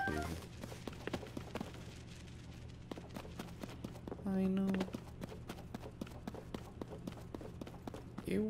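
Footsteps crunch on dirt and stone.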